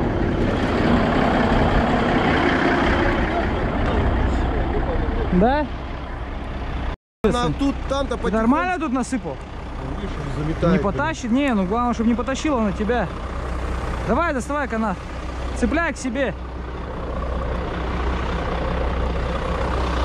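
A truck engine idles nearby with a low, steady rumble.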